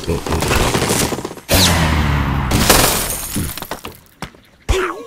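Wooden and stone blocks crash and tumble down.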